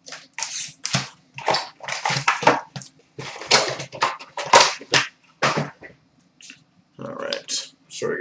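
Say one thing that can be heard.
Cardboard packs slide and tap on a glass counter close by.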